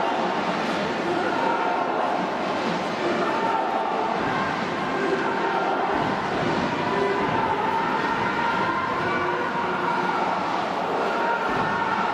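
A large crowd cheers and chants in rhythm in a big echoing arena.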